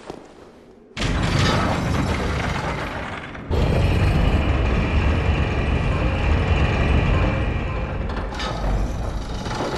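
A heavy lift rumbles and grinds as it moves.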